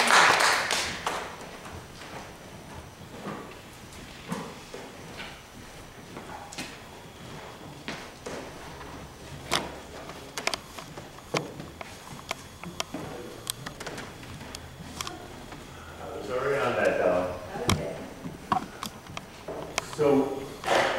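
People shuffle about and knock against wooden pews.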